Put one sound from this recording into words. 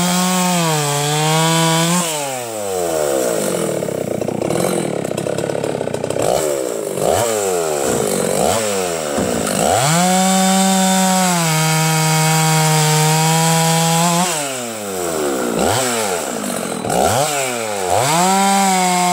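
A chainsaw engine revs hard, then drops to a sputtering idle, again and again.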